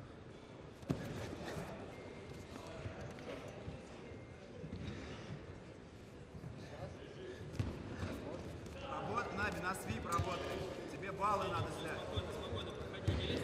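Bodies thump and shuffle on a padded mat.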